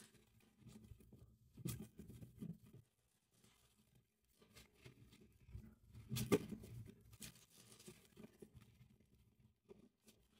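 Playing cards shuffle and riffle softly.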